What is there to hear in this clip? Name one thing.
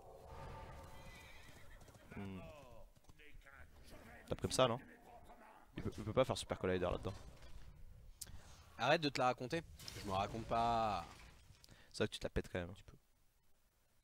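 A young man comments with animation through a microphone.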